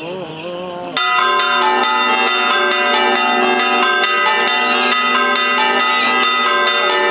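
Church bells ring loudly and steadily.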